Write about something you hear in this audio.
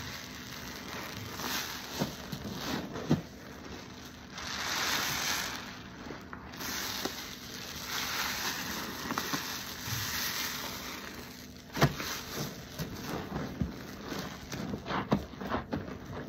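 Wet foam squishes and crackles as hands squeeze it.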